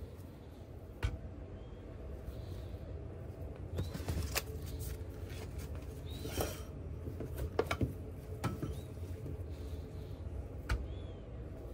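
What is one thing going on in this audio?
Gloved hands slap meat patties onto a metal counter.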